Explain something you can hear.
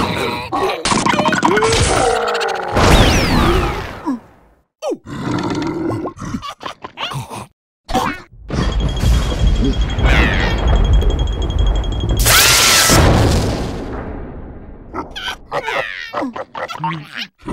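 Cartoon creatures shriek and yelp in squeaky voices.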